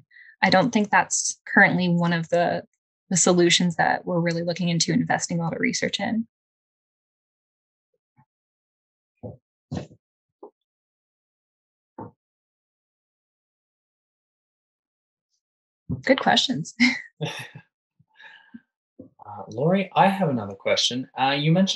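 A woman speaks calmly through an online call microphone, with pauses.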